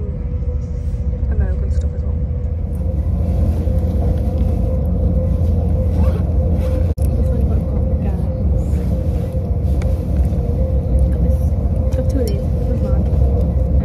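A train rumbles steadily along the track, with a low hum throughout.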